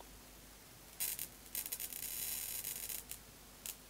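Electric sparks crackle and hiss in short bursts.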